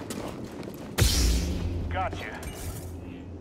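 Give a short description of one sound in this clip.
A heavy thud lands as someone jumps down.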